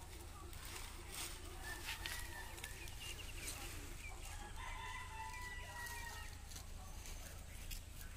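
Dry leaves rustle and crackle as a goat steps and noses about on the ground.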